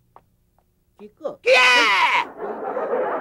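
A man cries out loudly nearby.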